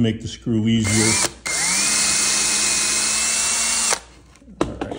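An electric drill whirs at high speed, driving into wood.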